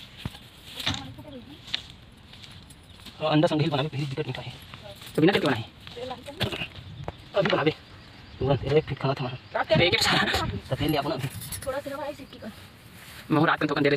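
Hands scrape and crumble loose soil.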